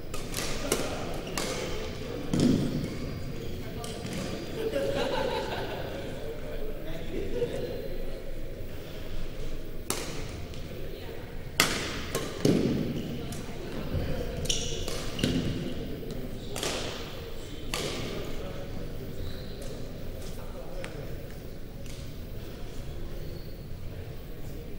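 Shoes squeak on a wooden floor in a large echoing hall.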